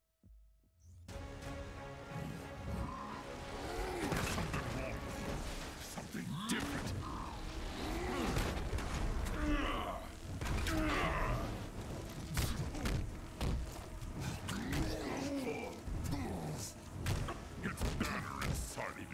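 Heavy punches and crashes thud and boom during a fight.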